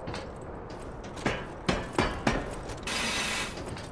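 A ladder's wooden rungs knock under climbing feet.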